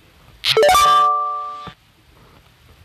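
A game plays a bright, ringing jingle that rises and then fades.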